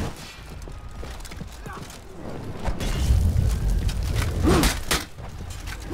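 Armoured footsteps run on stone.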